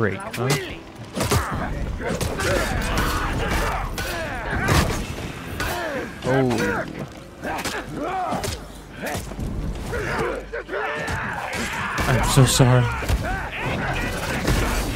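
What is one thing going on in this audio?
Warriors grunt and shout as they fight.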